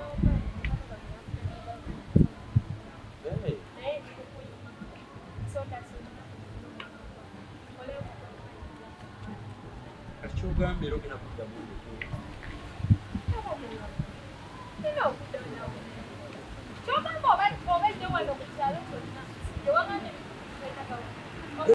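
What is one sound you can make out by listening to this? A man speaks, close by.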